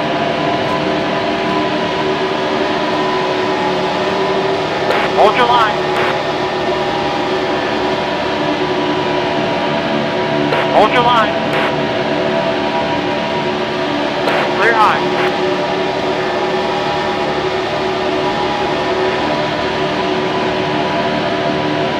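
Many race car engines roar steadily at high speed in a tight pack.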